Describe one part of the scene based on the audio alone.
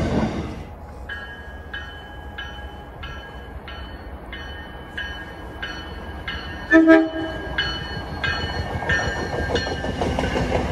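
A train bell rings in a steady, even rhythm as a train approaches.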